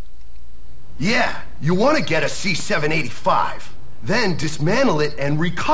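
A man speaks with animation through a loudspeaker.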